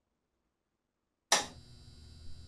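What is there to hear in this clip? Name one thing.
A power switch clicks on.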